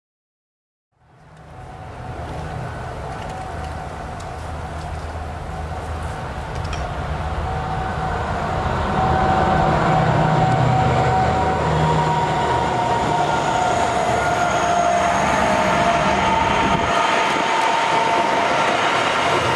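Diesel locomotives drone steadily as they approach, growing louder.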